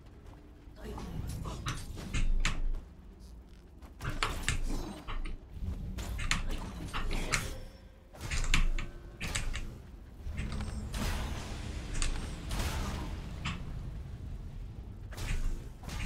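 Sword slashes and impacts ring out in quick bursts.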